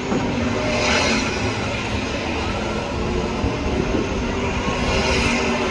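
Tyres screech on the track.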